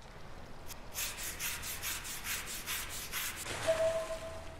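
A mop scrubs a wet tiled floor with quick, rhythmic strokes.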